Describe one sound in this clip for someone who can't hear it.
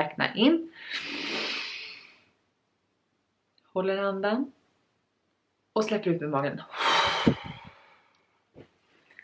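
A young woman talks expressively and close to a microphone, with pauses.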